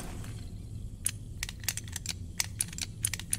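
The dials of a combination padlock click as they turn.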